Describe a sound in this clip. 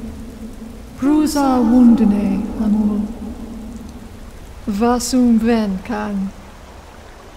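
A man speaks slowly in a deep, booming voice.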